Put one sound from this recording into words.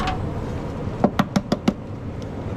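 An egg taps sharply against the rim of a metal pan several times.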